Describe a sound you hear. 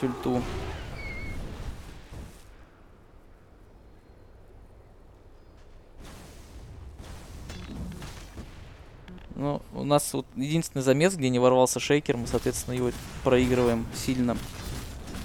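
Video game fight effects crackle and burst.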